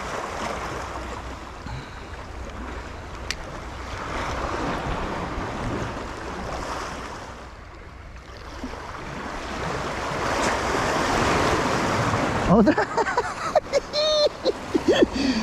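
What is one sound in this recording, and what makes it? Water splashes and laps against a boat's hull.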